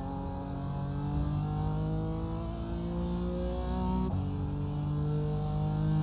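A racing car engine revs higher and higher with a steady roar.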